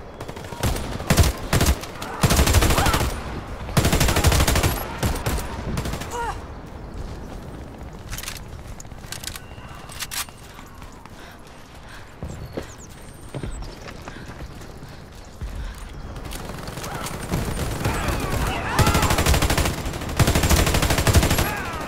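A rifle fires in loud rapid bursts.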